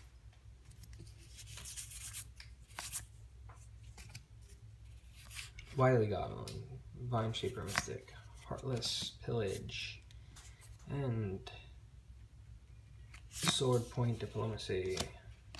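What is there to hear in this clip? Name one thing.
Playing cards slide and flick against each other.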